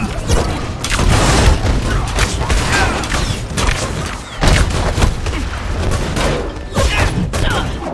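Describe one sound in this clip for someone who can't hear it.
Heavy punches and impacts thud and crash repeatedly.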